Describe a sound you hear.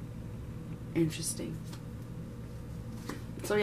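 Playing cards rustle and slide as a hand handles them.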